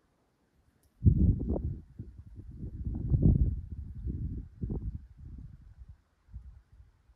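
Wind gusts rumble against the microphone outdoors.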